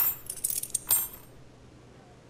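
Metal handcuffs clink and rattle on a table.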